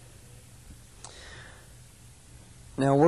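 A cloth rustles as hands press it down.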